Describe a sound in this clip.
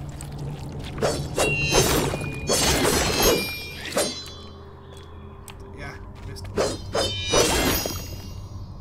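Blades swish and slash in quick bursts.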